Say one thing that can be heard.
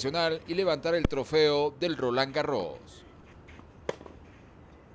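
A tennis ball is hit with a racket with a sharp pop.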